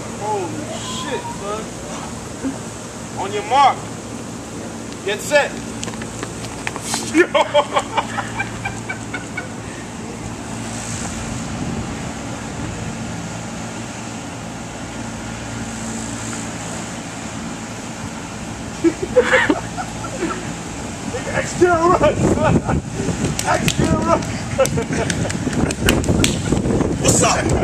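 Young men shout and whoop excitedly nearby outdoors.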